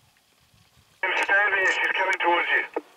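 A cheetah chirps loudly in quick, high calls.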